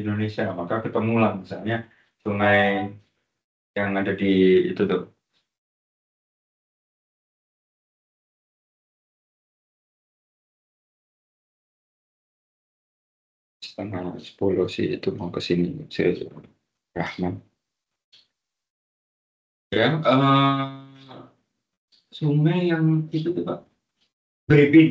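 A man speaks calmly close to the microphone, in bursts with long pauses.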